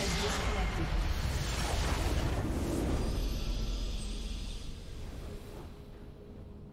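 A loud game explosion rumbles and fades.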